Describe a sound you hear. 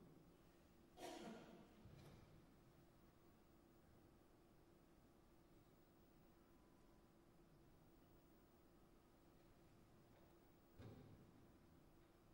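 A musician plays a few short, sparse notes that ring out in a large quiet hall.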